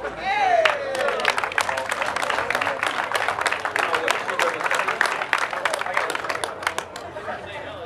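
A crowd claps and cheers loudly.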